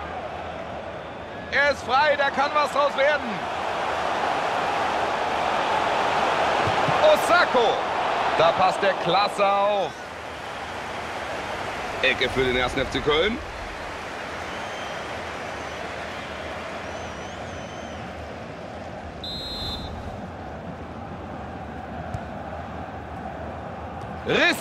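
A stadium crowd roars and swells with excitement.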